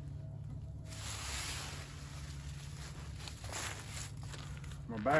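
Dry leaves rustle as a man gathers them by hand.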